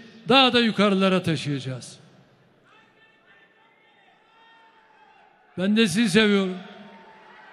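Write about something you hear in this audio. A man makes a speech through loudspeakers in a large echoing hall.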